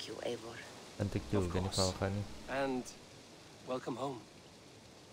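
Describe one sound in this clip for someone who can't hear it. A man answers in a deep, calm voice.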